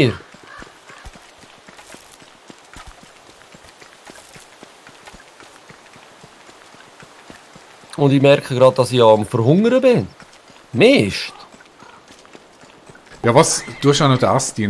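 Light footsteps patter on dry ground.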